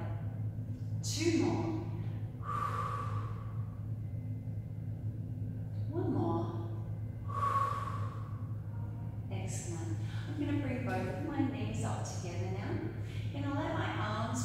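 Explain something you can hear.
A woman speaks calmly, giving instructions.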